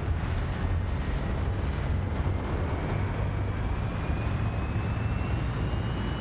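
A high engine whine slowly rises in pitch.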